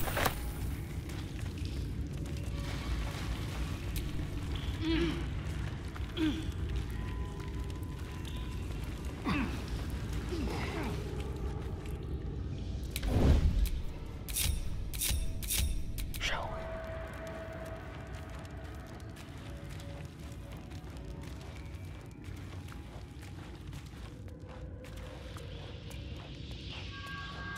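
Footsteps scuff over rocky ground.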